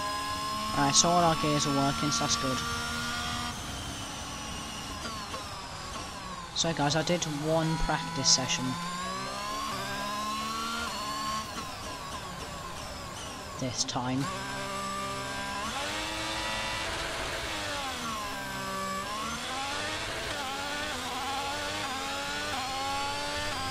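A racing car engine whines and revs up and down throughout.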